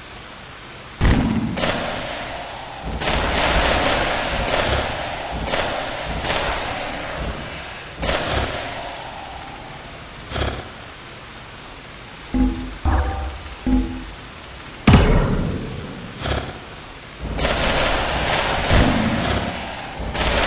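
Short crackling blasts of magic go off again and again as creatures are struck.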